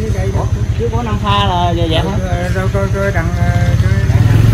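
An elderly man talks close by.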